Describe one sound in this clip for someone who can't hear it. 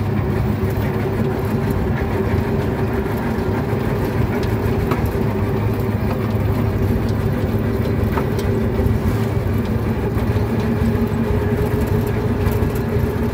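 A small engine drones steadily and rattles from inside a moving vehicle.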